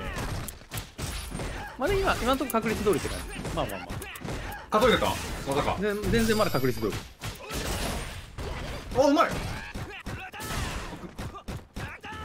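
Punches and kicks land with sharp smacking thuds.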